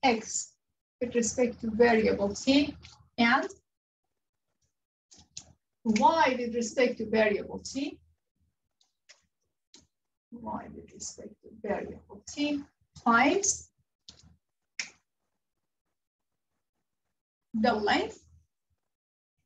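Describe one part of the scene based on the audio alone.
A young woman speaks calmly and clearly, close by, in short bursts with pauses.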